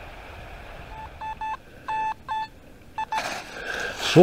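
A metal detector beeps in short bursts.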